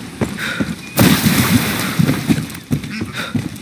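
A body slides roughly across stone.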